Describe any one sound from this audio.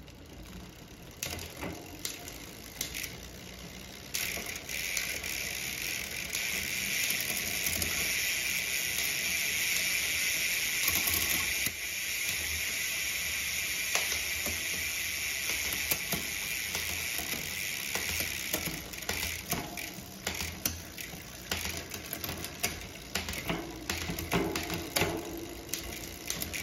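A bicycle chain whirs steadily over a spinning rear cassette.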